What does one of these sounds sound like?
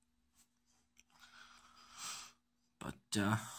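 A young man exhales vapour with a soft breathy hiss.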